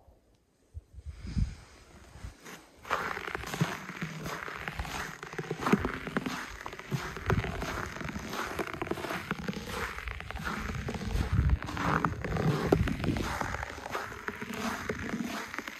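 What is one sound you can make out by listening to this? Footsteps crunch on packed snow outdoors.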